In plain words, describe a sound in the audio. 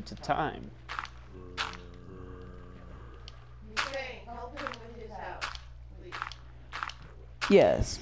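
Blocks crunch as they are dug, in short repeated bursts.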